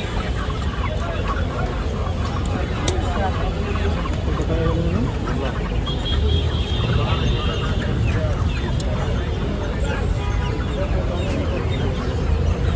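Several men and women talk over one another close by in a busy, noisy crowd.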